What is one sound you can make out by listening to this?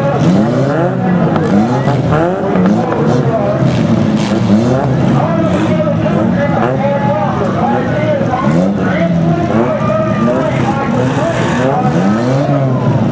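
A large crowd murmurs in the distance.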